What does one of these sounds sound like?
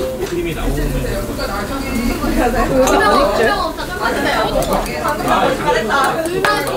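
A group of young men and women chatter and talk over one another close by.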